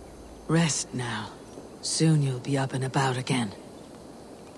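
A man speaks calmly and softly.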